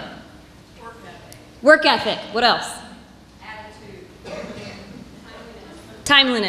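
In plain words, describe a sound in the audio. A woman speaks with animation into a microphone, heard over loudspeakers in a large hall.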